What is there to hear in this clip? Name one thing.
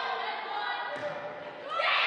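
A volleyball smacks off a player's hands in a large echoing gym.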